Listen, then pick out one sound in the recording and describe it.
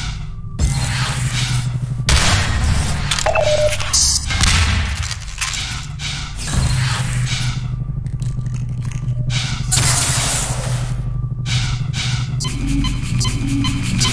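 An energy ball crackles and hums with electric zaps.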